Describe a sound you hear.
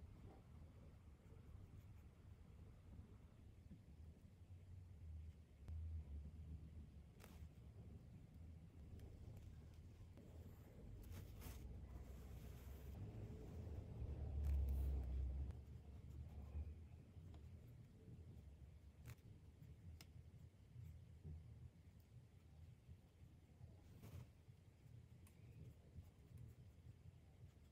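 A paintbrush dabs and strokes gouache onto paper.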